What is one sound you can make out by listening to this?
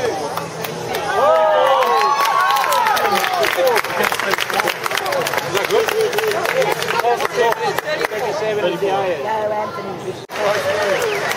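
A crowd claps and cheers loudly.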